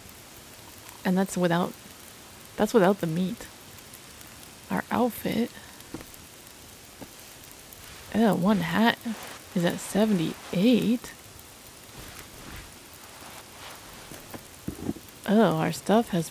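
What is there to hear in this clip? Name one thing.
A young woman talks casually into a close microphone, in short bursts.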